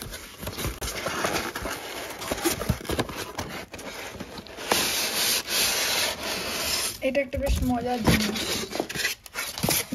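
Foam blocks squeak against cardboard as they are lifted out.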